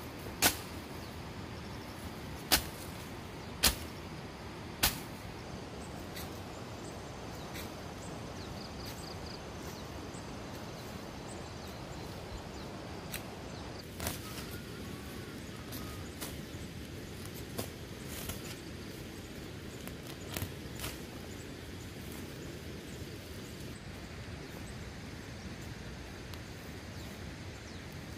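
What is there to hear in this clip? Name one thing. Plants rustle and tear as roots are pulled from the soil.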